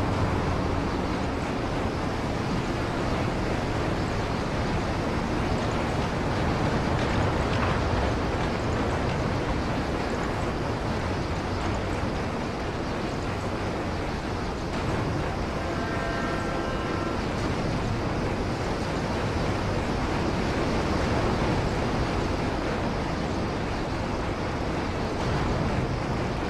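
A cable car rumbles steadily as it glides along its cable.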